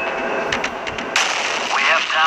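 A loud explosion booms.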